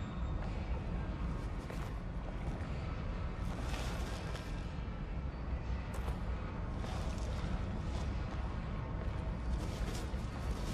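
Footsteps scuff slowly on a stone floor in an echoing tunnel.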